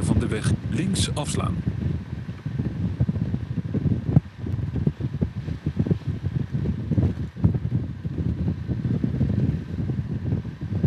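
Wind buffets and rumbles loudly against the rider.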